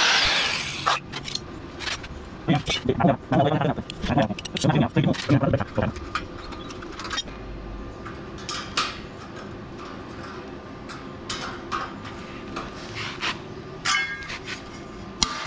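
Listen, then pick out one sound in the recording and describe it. Sheet-metal pieces clink and scrape together in someone's hands.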